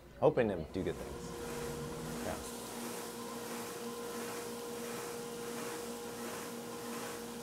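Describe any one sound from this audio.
A woodworking machine hums steadily.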